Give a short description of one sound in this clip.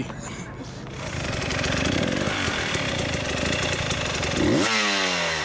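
A motorcycle engine idles.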